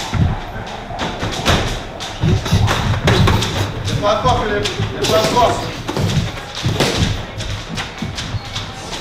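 Boxing gloves thud in quick punches.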